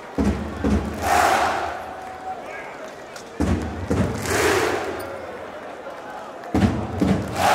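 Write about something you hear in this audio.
A large crowd cheers and chants loudly in a big echoing arena.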